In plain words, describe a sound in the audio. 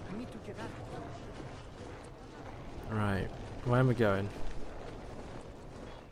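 Footsteps crunch quickly on snowy stone.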